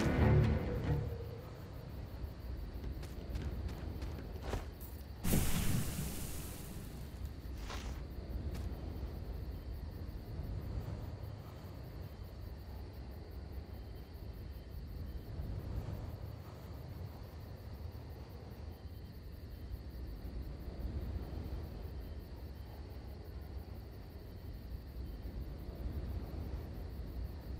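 Low, dark music hums steadily.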